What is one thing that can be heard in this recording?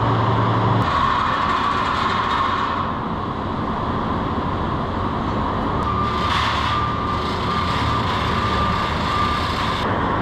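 A worker climbs over a metal railing with soft clanks.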